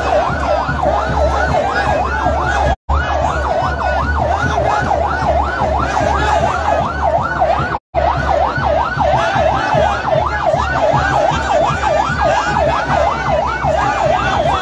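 A large crowd outdoors cheers and shouts.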